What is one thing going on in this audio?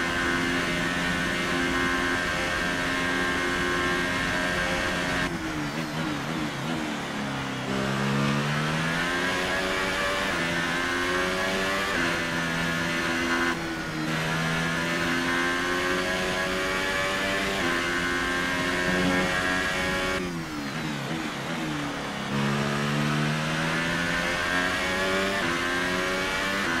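A racing car engine screams at high revs, climbing in pitch through quick gear changes and dropping sharply under braking.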